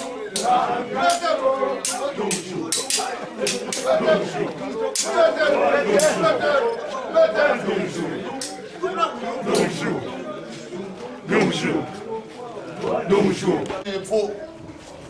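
A crowd of men sings and chants together.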